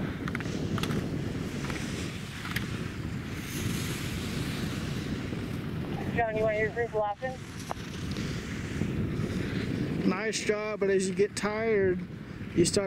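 Skis scrape and hiss over hard snow as a skier carves turns.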